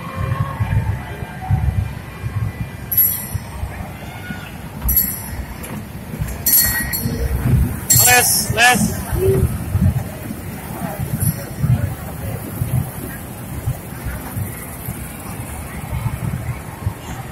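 A toy train rumbles along its track.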